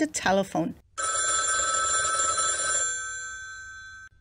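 A telephone bell rings and then fades away.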